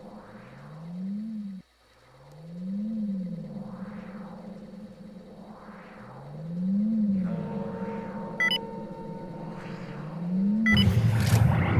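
A machine hum rises and falls in slow, repeating swells.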